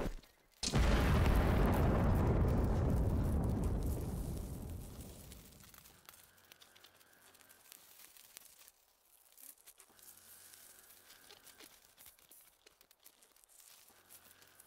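Footsteps crunch over dry ground and gravel.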